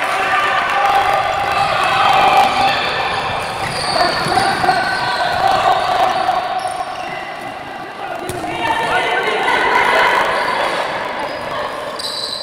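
Sneakers squeak on a hard indoor court floor.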